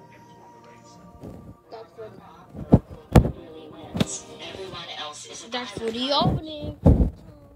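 A television plays music from a film's opening.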